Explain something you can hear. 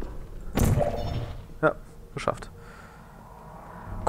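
A sci-fi energy gun fires with a short electronic zap.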